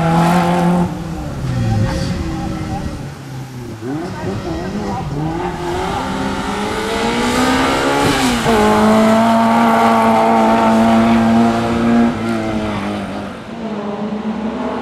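A small hatchback's engine revs hard, its pitch rising and falling as it accelerates and brakes through a slalom outdoors.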